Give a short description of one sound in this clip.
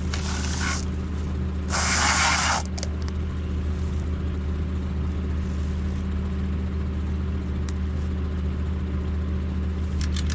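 A tractor engine idles with a steady low hum nearby.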